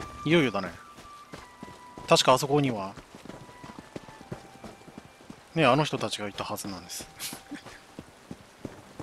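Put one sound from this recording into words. Footsteps patter quickly along a dirt path.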